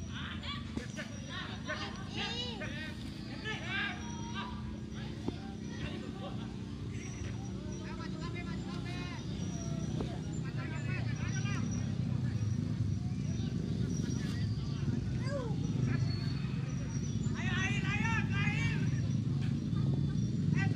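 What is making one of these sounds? Young men shout and call to each other in the distance, outdoors.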